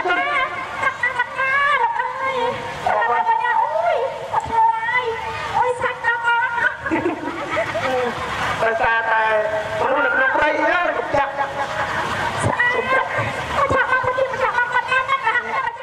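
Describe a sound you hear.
A young woman sings into a microphone through loudspeakers.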